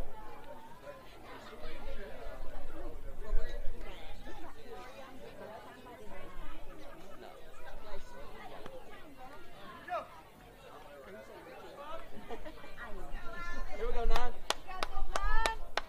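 Young players chatter and shout across an open field.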